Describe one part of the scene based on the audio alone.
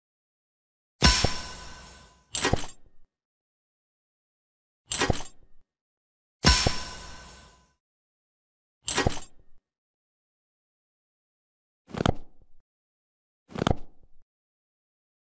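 Short game sound effects pop as units are placed.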